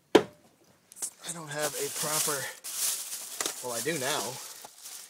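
A plastic bag rustles and crinkles up close.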